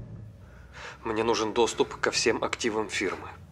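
A man speaks calmly and quietly nearby.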